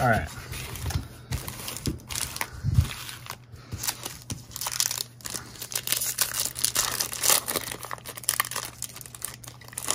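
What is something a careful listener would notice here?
Foil card packs crinkle and rustle as hands shuffle them.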